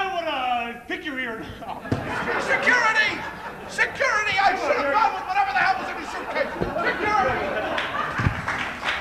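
Men shout and yell with animation.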